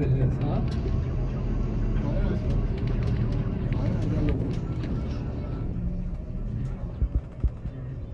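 A bus engine rumbles steadily from inside the bus as it drives along.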